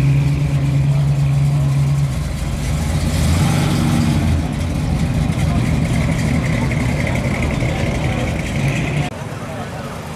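A car engine rumbles deeply as the car rolls slowly past.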